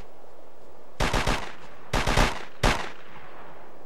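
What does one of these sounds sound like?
Bursts of rifle fire ring out sharply.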